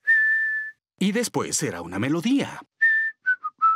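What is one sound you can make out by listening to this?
A man speaks cheerfully in a deep voice.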